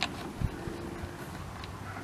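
A plastic connector clicks as it is unplugged.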